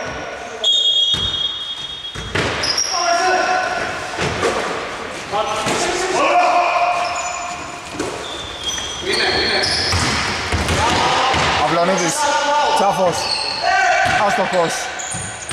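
Male players shout to each other across the hall.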